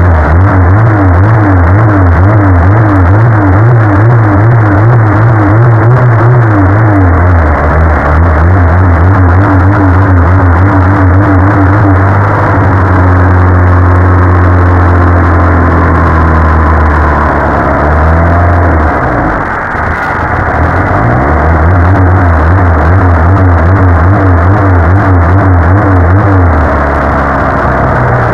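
A car engine runs loudly close by, its revs rising and falling unevenly.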